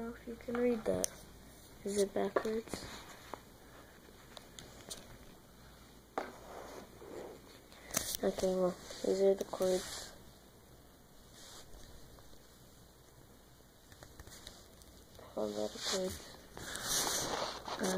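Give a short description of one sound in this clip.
Clothing rustles and brushes against the microphone.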